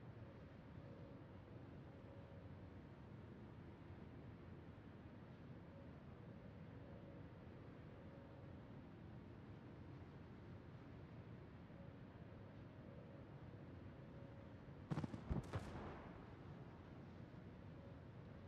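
A ship's engine rumbles low and steady.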